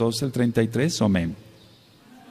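A man speaks into a microphone in a calm, measured voice.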